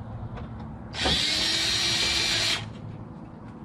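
A power drill whirs in a short burst.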